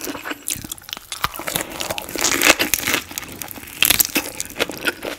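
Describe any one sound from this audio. Teeth bite into a crisp lettuce roll with a crunch.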